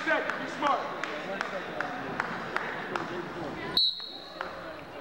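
A crowd of spectators chatters and calls out in a large echoing hall.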